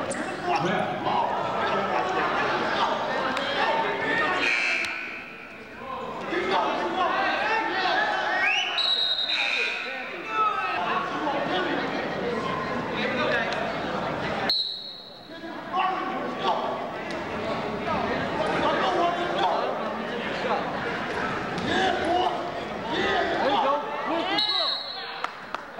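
A crowd of spectators cheers and shouts loudly in an echoing hall.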